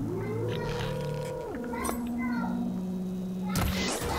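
A bow shot releases an arrow with a sharp snap.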